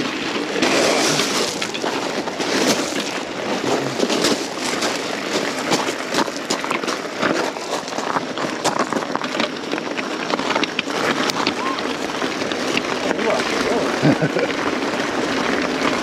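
Bicycle parts rattle and clatter over bumps.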